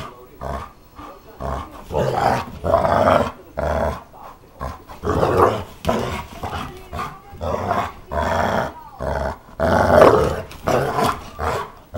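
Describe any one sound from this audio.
A dog squeezes a squeaky rubber toy in its mouth, making it squeak again and again.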